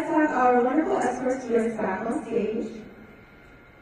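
A woman speaks calmly into a microphone, heard over loudspeakers in a large echoing hall.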